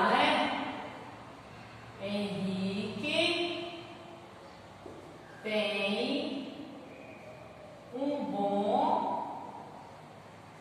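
A woman speaks calmly in short phrases nearby.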